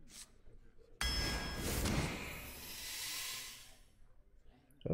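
A card game plays a sparkling magical burst as cards dissolve.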